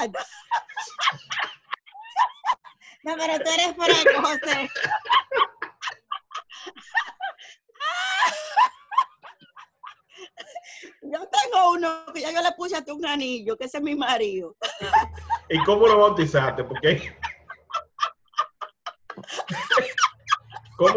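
A woman laughs loudly over an online call.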